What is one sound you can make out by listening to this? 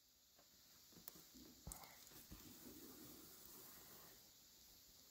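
Thread rustles softly as it is pulled through cloth.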